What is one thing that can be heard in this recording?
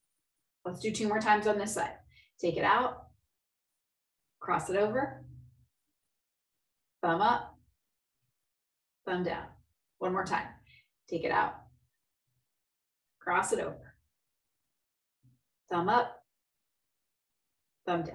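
A woman speaks calmly and clearly into a nearby microphone, giving short instructions with pauses.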